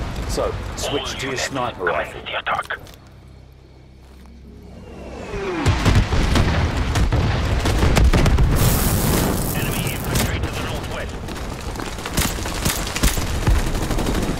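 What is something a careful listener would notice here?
Gunfire crackles in the distance.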